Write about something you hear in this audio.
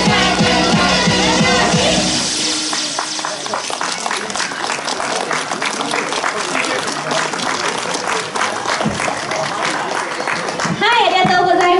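Upbeat pop music plays loudly through loudspeakers.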